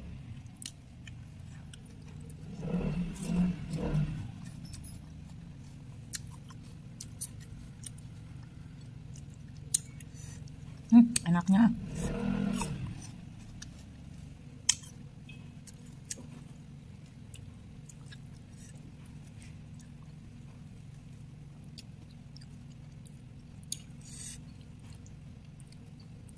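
Fingers squish and pick through soft food in a sauce on a plate.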